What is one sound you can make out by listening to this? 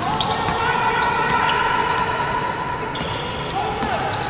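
A basketball bounces on the floor with hollow thumps.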